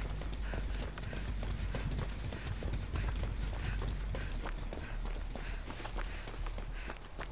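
Footsteps crunch quickly through dry grass and leaves.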